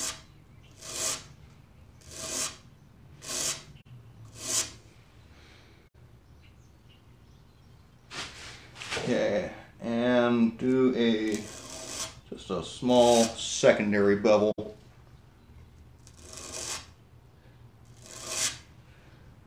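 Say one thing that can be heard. Sandpaper rubs on wood in short, separate strokes.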